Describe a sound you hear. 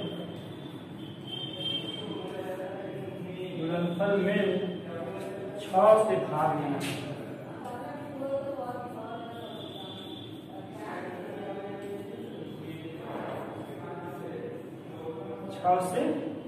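Chalk scrapes and taps on a blackboard.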